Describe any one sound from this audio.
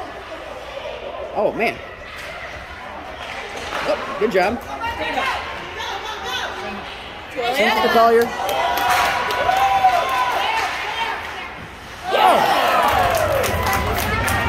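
Hockey sticks clack against pucks.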